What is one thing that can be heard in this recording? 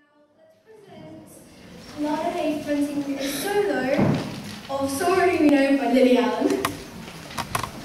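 A young girl announces through a microphone.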